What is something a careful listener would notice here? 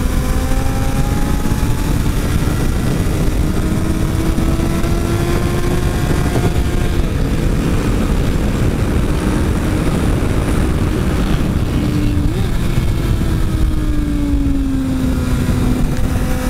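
Wind rushes hard past the rider.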